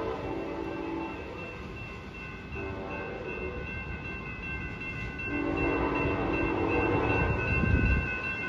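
A train horn blasts several times as a train approaches.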